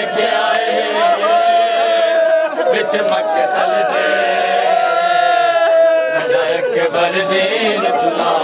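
A crowd of men beat their chests in rhythm.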